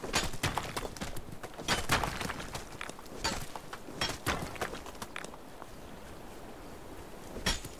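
Footsteps crunch quickly over loose stones.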